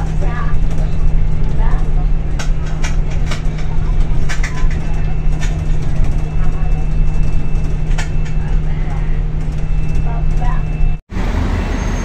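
Seats and fittings rattle and knock as a bus rides along.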